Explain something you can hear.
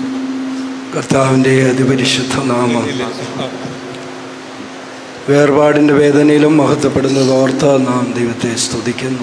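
A man sings a slow, mournful hymn through a loudspeaker.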